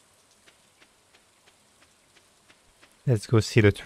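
Soft footsteps tap quickly and evenly on a dirt path.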